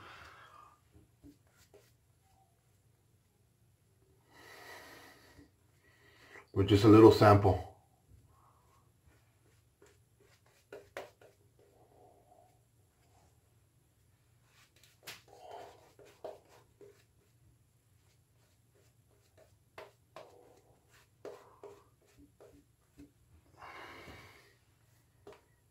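A shaving brush swishes and squelches lather against a man's face.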